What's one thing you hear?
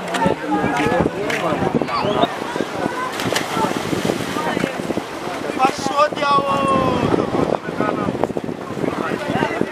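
Young boys shout and chatter excitedly outdoors.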